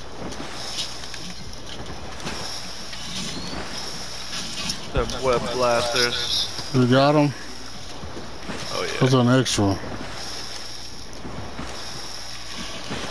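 Water splashes steadily as a swimmer paddles through it.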